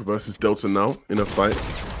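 A shotgun fires at close range.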